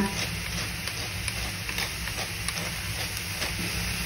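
A pepper mill grinds.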